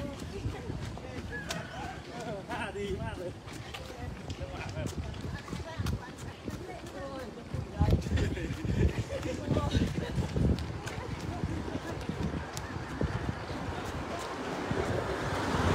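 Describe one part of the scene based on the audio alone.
Running shoes patter steadily on pavement.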